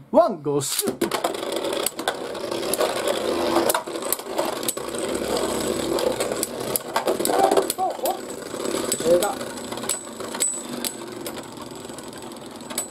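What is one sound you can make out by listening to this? Spinning tops whirr and grind across a plastic arena.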